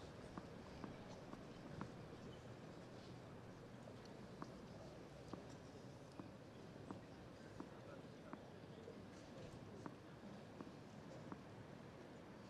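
A tennis ball bounces repeatedly on the ground.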